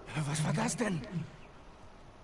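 A man asks a question in a low voice.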